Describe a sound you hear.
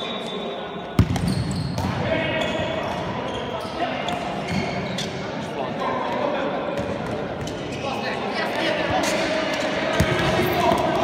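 A futsal ball is kicked on a hard indoor court.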